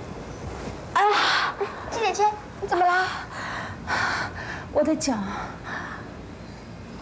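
A young woman groans and speaks in pain close by.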